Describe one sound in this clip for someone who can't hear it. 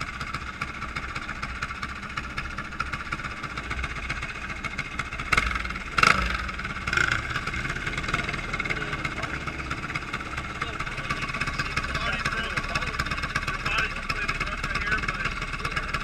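A go-kart engine idles steadily close by.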